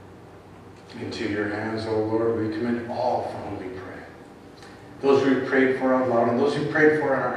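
A man speaks through a microphone in an echoing hall.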